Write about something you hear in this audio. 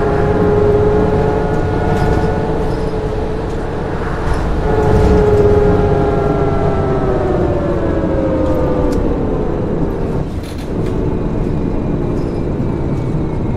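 Bus tyres rumble on the road.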